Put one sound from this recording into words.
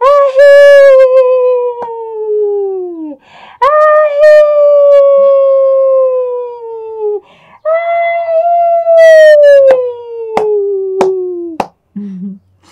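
An elderly woman sings loud, long drawn-out notes close by.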